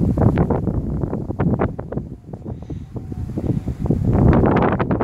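Wind buffets outdoors with a low rumble.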